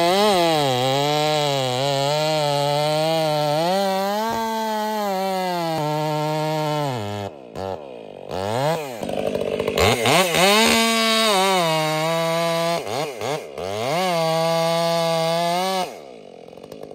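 A chainsaw roars loudly, revving up and down as it cuts into a tree.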